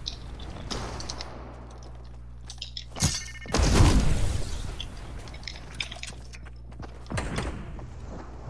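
Game building pieces clatter into place in quick bursts.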